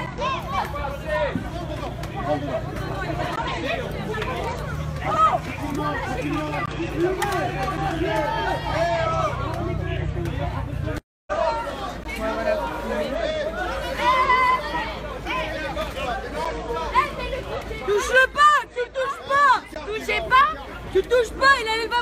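A crowd of people shout and talk loudly outdoors.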